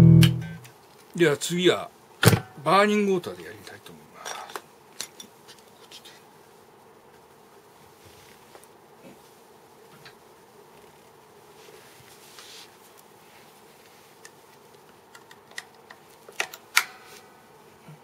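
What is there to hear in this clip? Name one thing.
A guitar cable crackles and pops as it is plugged and unplugged.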